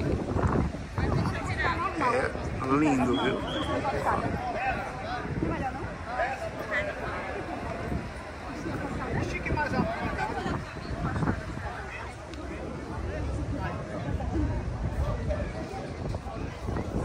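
Men and women chatter nearby in the open air.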